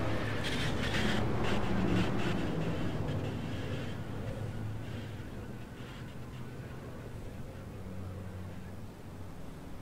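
Cars crash and scrape against each other.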